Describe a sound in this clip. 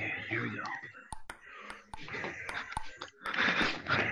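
A ping-pong ball taps sharply on a table and paddle.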